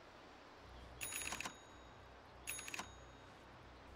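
Short bright magic sound effects chime twice.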